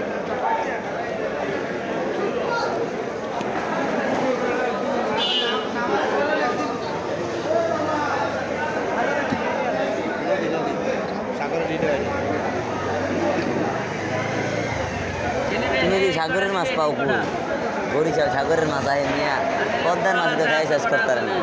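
Many men and women chatter at once in a busy crowd nearby.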